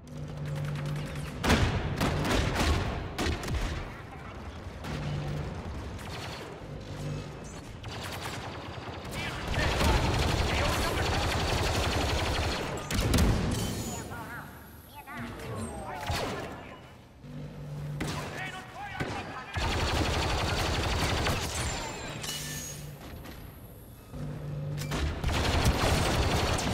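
Blaster rifles fire in rapid bursts.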